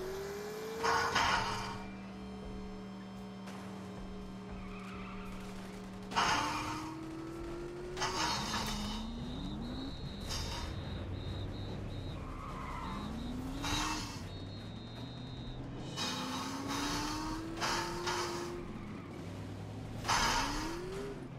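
A car crashes hard with a loud bang.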